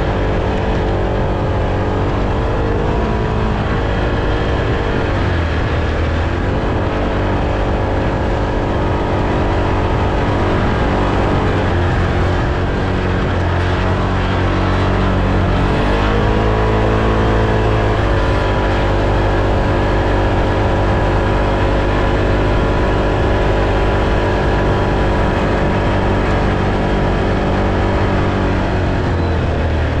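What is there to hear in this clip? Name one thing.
Tyres roll and crunch over dry grass.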